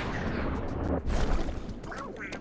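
An explosion bursts with a loud pop.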